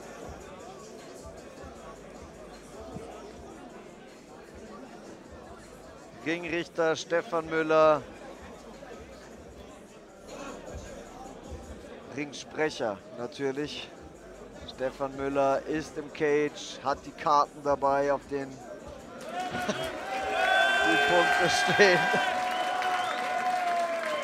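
A crowd murmurs and then cheers.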